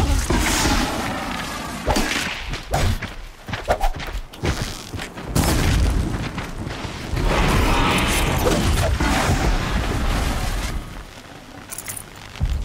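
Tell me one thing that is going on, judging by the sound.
A large mechanical creature clanks and whirs nearby.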